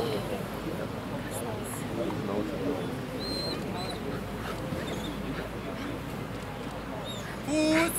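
A man calls out short commands to a dog.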